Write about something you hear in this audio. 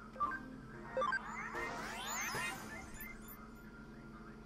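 A magical energy burst whooshes and shimmers.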